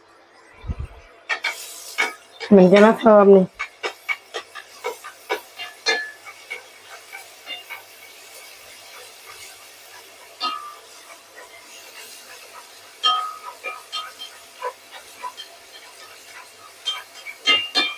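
Chopsticks scrape and tap against a metal pan.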